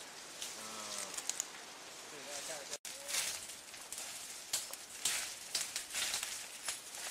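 A fire crackles and roars, with sharp pops.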